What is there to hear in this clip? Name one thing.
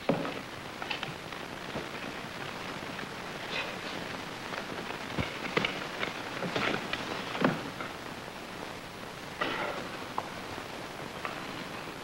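Wooden boards knock and clatter.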